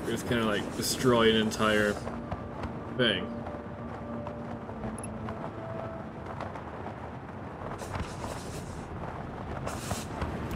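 Wind rushes past during a fast freefall.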